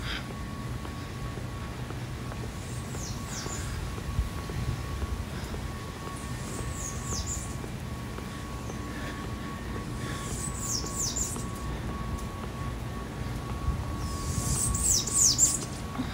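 Wind blows outdoors and rustles the leaves of the bushes.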